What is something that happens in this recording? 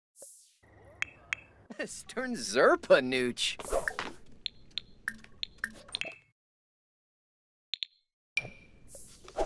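Soft game menu clicks and chimes sound.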